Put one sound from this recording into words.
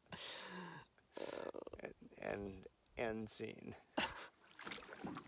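Two men laugh close by.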